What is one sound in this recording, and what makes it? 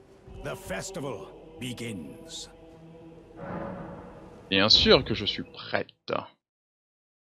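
A man speaks loudly and grandly, as in an announcement.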